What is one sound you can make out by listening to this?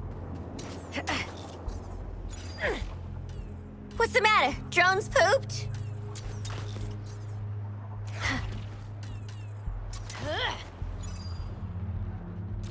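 A grappling rope zips and whooshes through the air.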